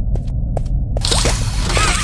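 Mechanical grabber arms shoot out with a whirring rush.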